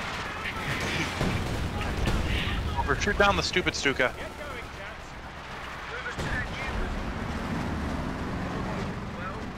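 Explosions rumble and boom in a battle.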